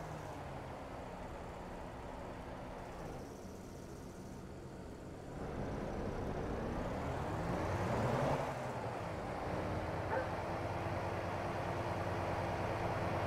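A truck engine idles with a low rumble, then revs up as the truck pulls forward.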